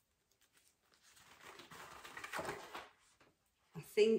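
Paper rustles and crinkles as it is unfolded.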